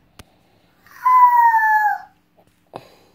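A young girl blows a small toy whistle in a high, steady tone.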